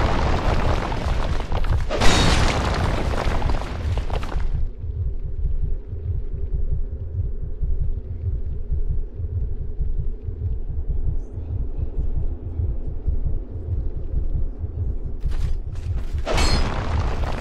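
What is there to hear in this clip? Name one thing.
Heavy armoured footsteps thud slowly on stone.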